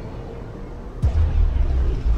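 A loud boom sounds as a spacecraft enters a swirling vortex.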